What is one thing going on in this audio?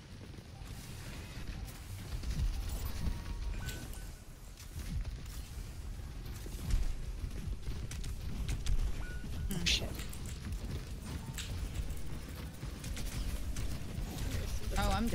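Rapid bursts of gunfire and energy blasts crackle and thump throughout.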